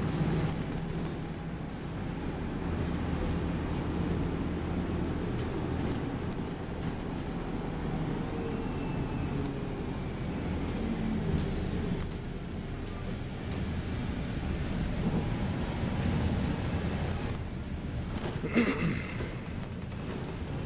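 A single-decker diesel bus drones from inside as it drives along.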